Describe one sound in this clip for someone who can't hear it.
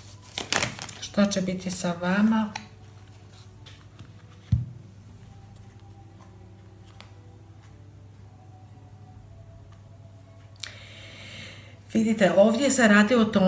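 Playing cards rustle and flick softly as they are shuffled.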